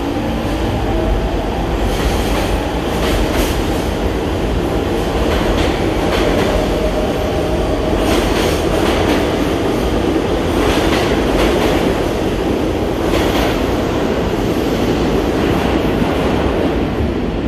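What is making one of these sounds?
A subway train rumbles and roars past loudly in an echoing underground station.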